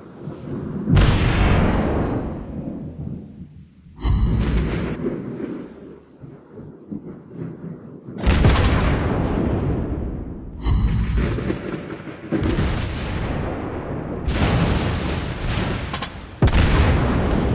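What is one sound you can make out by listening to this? Heavy naval guns fire in loud booming salvos.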